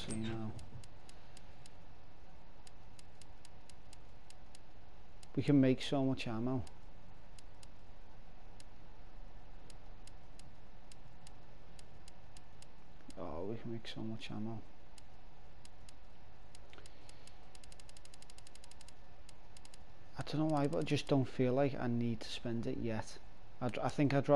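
Soft menu clicks tick in quick succession as a cursor scrolls through a list.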